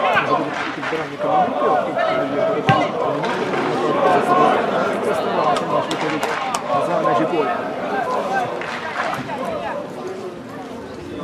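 A crowd of spectators shouts and cheers outdoors, some way off.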